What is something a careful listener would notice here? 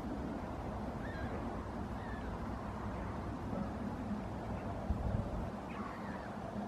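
Gulls call faintly in the distance.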